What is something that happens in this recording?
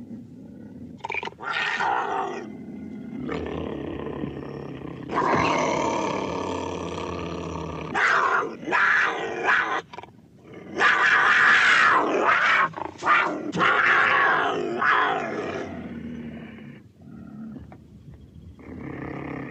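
A man speaks with animation, close by.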